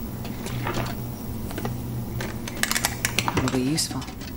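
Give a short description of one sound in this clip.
A wooden drawer slides open and things rattle inside.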